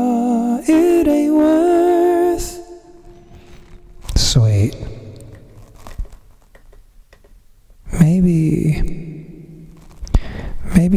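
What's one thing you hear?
A young man sings into a close microphone.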